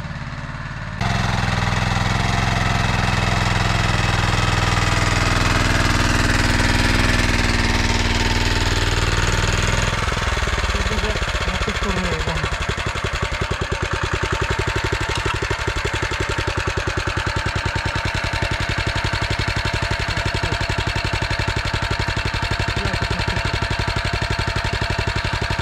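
A small petrol engine runs loudly close by, chugging steadily.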